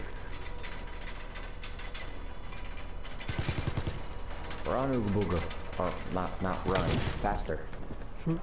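A machine gun fires rapid bursts of shots.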